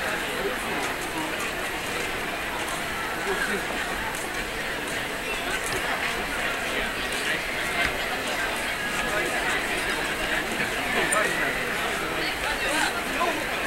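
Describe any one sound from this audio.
A crowd of people chatters outdoors all around.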